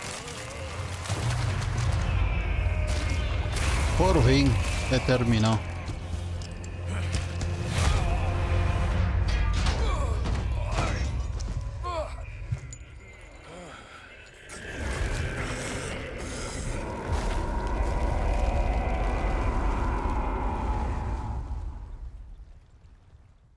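A monstrous creature roars and rumbles deeply.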